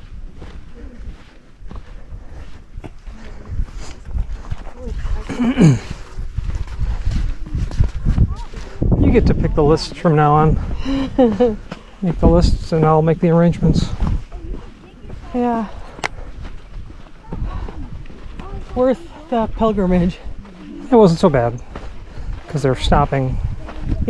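Footsteps crunch softly in sand.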